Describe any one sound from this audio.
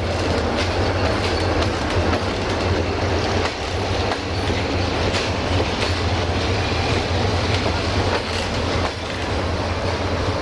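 Train wheels rumble and clatter over the rails as passenger coaches roll past.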